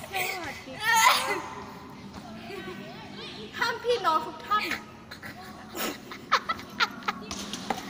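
A teenage girl laughs loudly close by.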